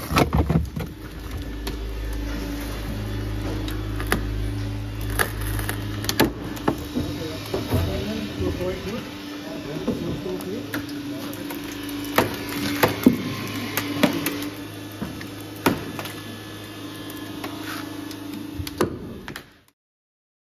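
A hydraulic rescue cutter crunches and snaps through a car's roof pillar.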